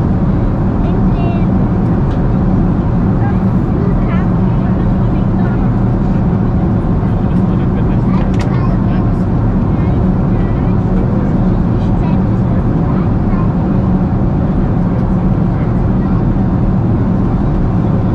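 Jet engines roar in a steady low drone inside an airliner cabin.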